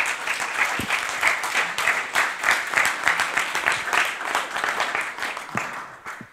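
An audience applauds steadily in a large room, fading toward the end.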